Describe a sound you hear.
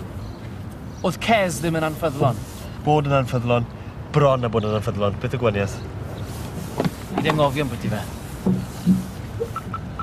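A young man answers calmly and firmly.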